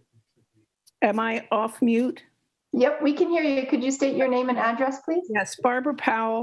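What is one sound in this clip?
A woman speaks calmly and steadily over an online call.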